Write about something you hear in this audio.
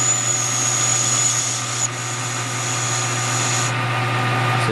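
A cutting tool scrapes shrilly against spinning metal.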